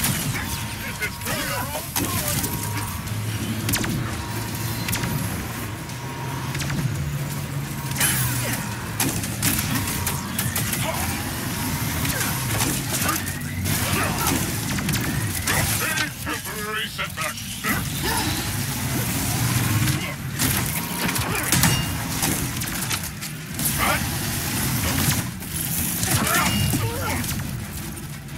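Laser beams hum and crackle in bursts.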